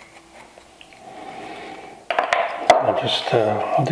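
A wooden block knocks down onto a wooden bench.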